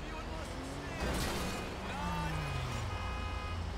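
A heavy truck crashes into a car with a loud metallic bang.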